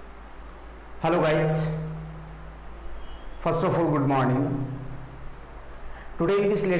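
A young man speaks calmly and clearly into a clip-on microphone, close by.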